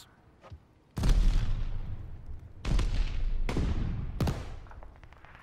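Loud gunshots boom and echo.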